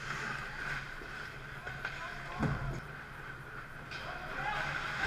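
Ice skates scrape and hiss across the ice in a large echoing arena.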